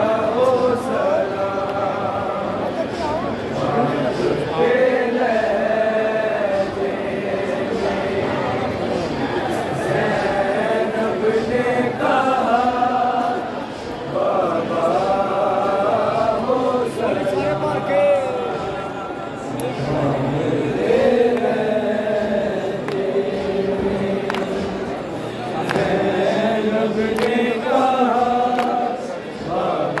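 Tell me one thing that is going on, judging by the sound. A crowd of men chants along in unison.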